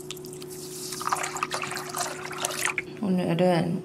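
Water pours into a bowl.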